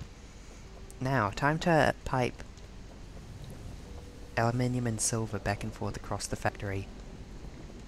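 A young woman speaks with animation through a close microphone.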